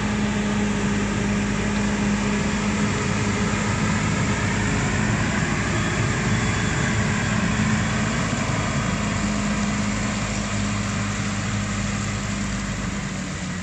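A diesel truck engine idles with a steady low rumble close by.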